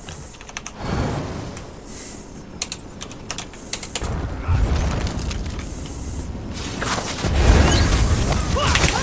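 Magic spells crackle and burst with deep booms.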